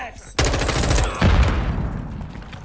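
A rapid burst of automatic gunfire rings out loudly and echoes.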